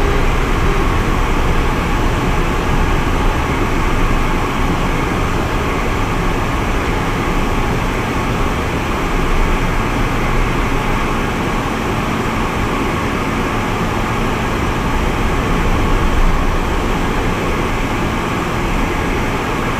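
A small plane's engine drones steadily in the cabin.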